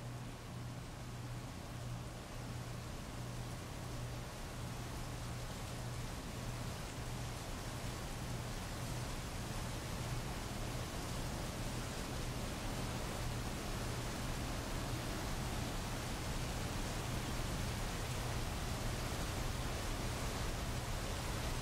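Heavy rain pours steadily onto a paved street outdoors.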